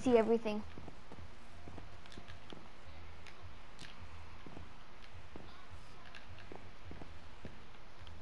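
Footsteps tap softly on wood and stone.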